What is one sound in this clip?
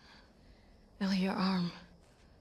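A young girl speaks nearby in a worried, trembling voice.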